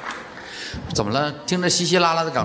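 A man speaks into a microphone on stage.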